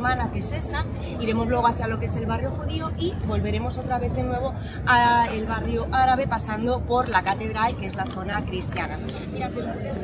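A woman speaks with animation to a group outdoors.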